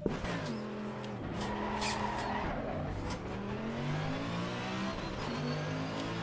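A racing car engine revs hard, rising in pitch and dropping at each gear change.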